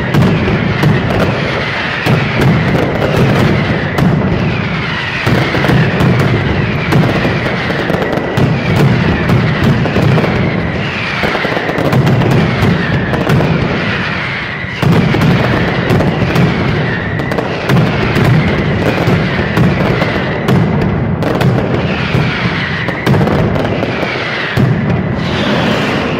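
Firecrackers bang in rapid, deafening bursts close by.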